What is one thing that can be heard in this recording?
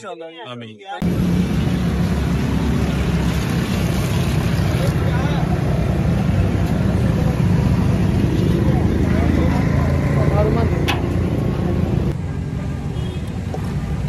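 A crowd of men chatters outdoors.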